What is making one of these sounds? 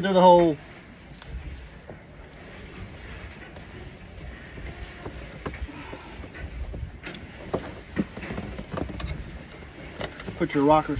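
Plastic parts click and rattle as wires are handled.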